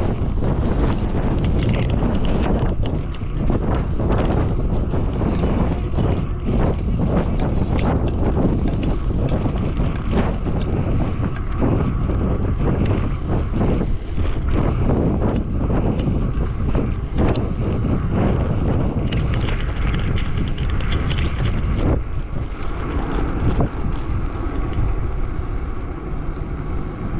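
Wind buffets loudly and roars past a rider moving at speed outdoors.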